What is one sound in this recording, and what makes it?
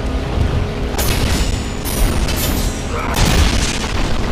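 Flames whoosh as fiery blades swing through the air.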